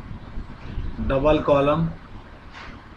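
A young man speaks briefly through a microphone.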